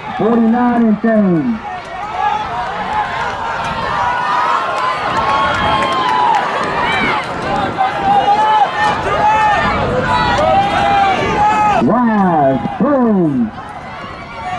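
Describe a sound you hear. A man nearby shouts loudly.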